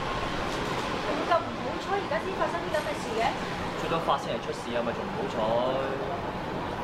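A young woman speaks close by in an upset voice.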